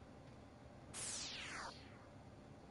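A sharp falling zap sounds as a game character beams down.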